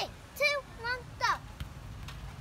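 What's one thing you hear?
A young girl squeals in a high voice.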